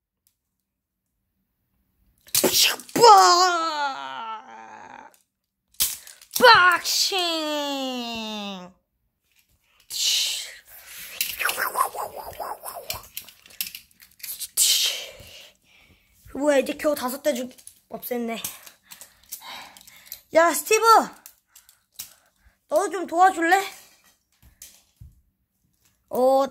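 Plastic toy pieces click and clatter as they are handled.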